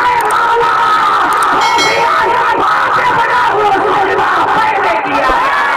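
A man chants passionately into a microphone through loudspeakers, in a reverberant space.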